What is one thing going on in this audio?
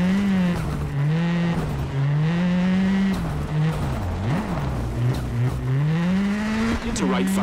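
A rally car engine revs hard, rising and falling through gear changes.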